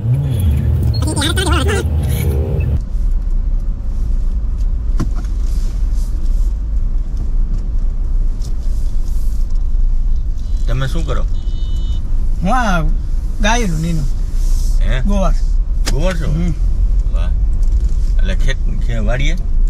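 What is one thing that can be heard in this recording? An engine hums low and steady inside a moving car.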